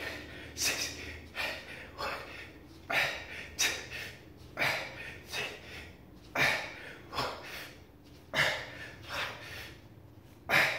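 A man breathes out sharply in rhythm with his push-ups.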